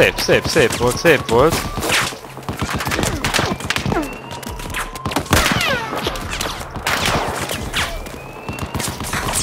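Distant gunfire and blasts rumble in the background.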